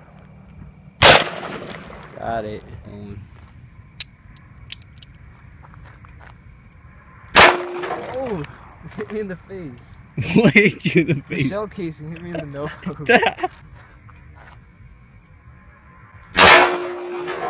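An airsoft gun fires with a sharp crack.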